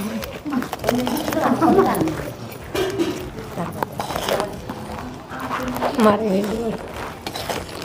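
A metal spoon scrapes a serving bowl.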